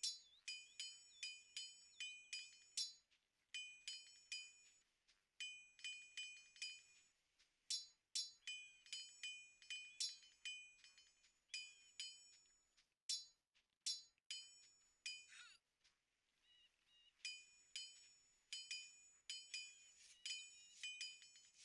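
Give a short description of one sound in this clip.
Swords clash and clang in quick, ringing strikes.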